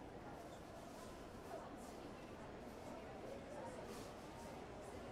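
Many people chatter in a large, echoing hall.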